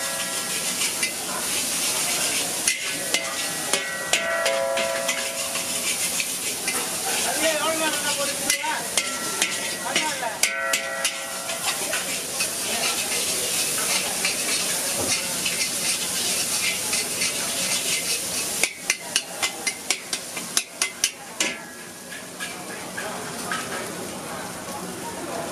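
Food sizzles and hisses steadily in a hot wok.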